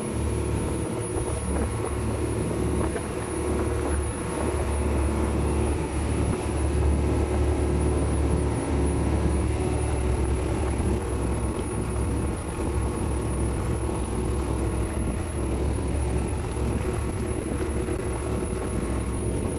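Wind blows over the open water.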